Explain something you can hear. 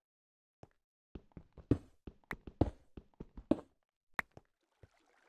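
A pickaxe chips at stone in quick knocks.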